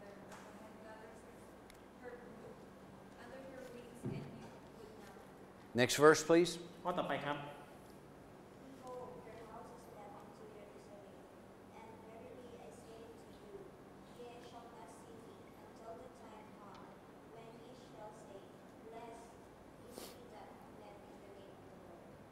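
An older man speaks calmly through a microphone in an echoing hall.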